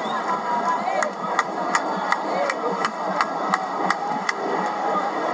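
Crowd members clap in rhythm.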